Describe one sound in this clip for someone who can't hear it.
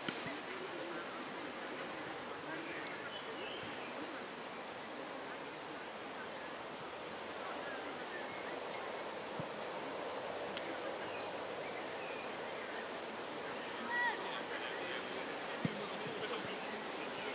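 Children chatter and call out at a distance outdoors.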